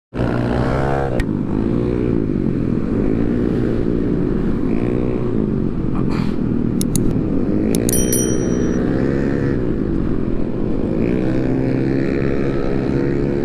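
A motorcycle engine revs up and down loudly close by, rising and falling in pitch.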